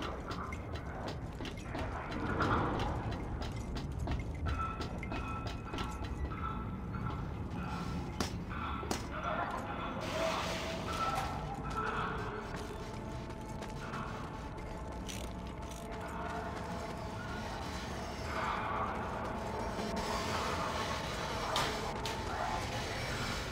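Footsteps crunch on gritty ground.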